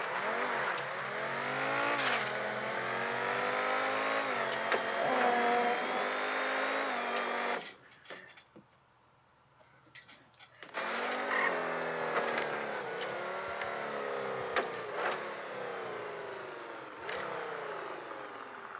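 A sports car engine revs high and shifts gears.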